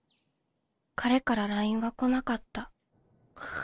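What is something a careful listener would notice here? A young woman speaks quietly and sadly.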